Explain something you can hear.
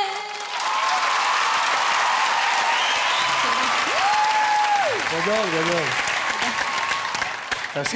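A large crowd cheers and applauds loudly in an echoing hall.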